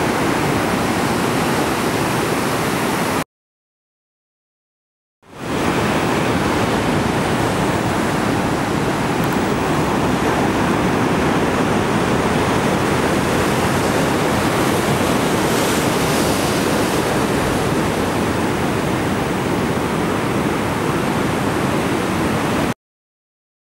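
Waves crash and roar steadily in the surf.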